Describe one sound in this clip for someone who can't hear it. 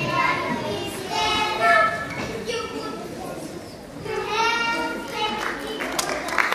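A group of young children sing together on a stage, heard from the audience.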